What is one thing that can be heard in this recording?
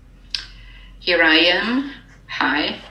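A middle-aged woman speaks cheerfully over an online call.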